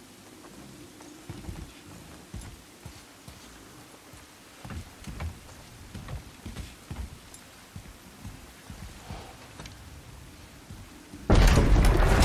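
Heavy footsteps thud on wooden boards.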